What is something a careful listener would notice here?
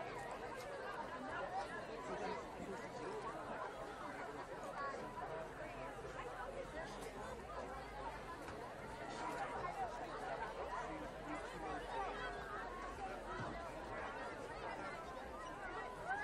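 A crowd of spectators chatters and murmurs steadily outdoors.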